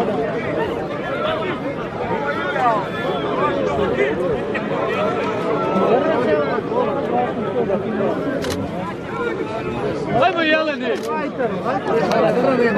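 A large outdoor crowd of men chatters and calls out loudly.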